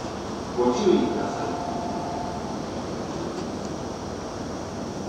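A train idles at a platform with a steady low hum.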